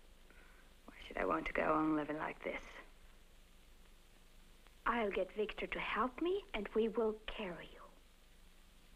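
A young woman speaks tensely and close by.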